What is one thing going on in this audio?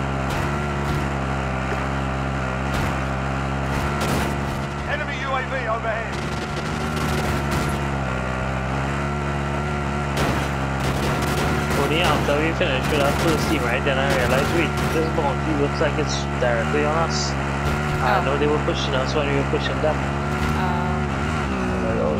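A heavy engine drones steadily.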